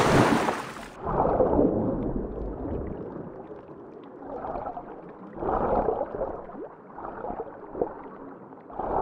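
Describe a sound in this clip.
Muffled underwater swishing comes in slow surges.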